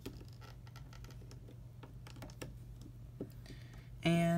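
Plastic beads and rubber bands click softly as fingers work them.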